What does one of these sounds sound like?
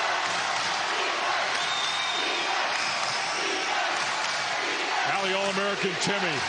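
A large indoor crowd roars and cheers in an echoing arena.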